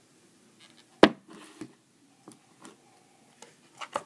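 Something bumps loudly against a nearby surface.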